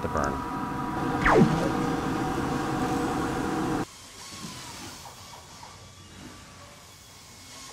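A laser engraver's motors whir as its head moves.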